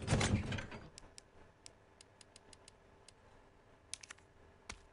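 Menu clicks tick quickly, one after another.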